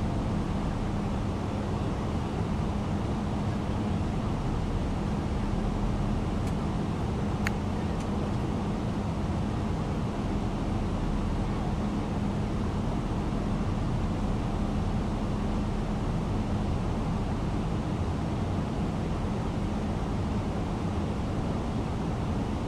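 Jet engines hum steadily in a low, even roar.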